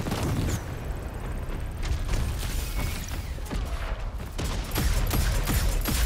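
Gunshots crack in quick bursts in a video game.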